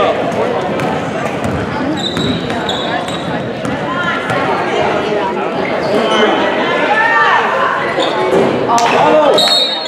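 A crowd of spectators chatters and cheers, echoing in a large hall.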